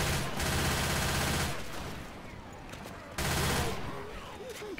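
A rifle fires rapid automatic bursts.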